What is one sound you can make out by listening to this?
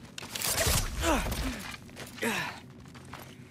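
A creature lets out sharp, falling shrieks.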